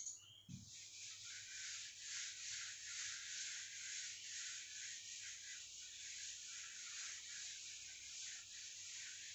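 A duster rubs across a whiteboard in quick, steady strokes.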